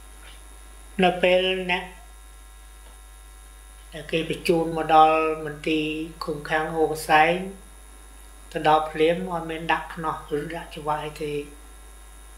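An elderly man speaks calmly and close by, with pauses.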